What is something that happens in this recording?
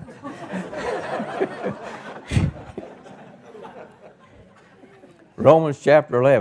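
An elderly man speaks calmly into a microphone, then speaks loudly with emphasis.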